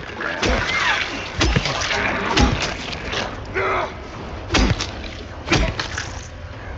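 Heavy blows thud and squelch against a creature.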